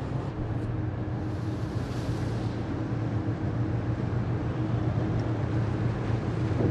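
A ship's engine rumbles steadily.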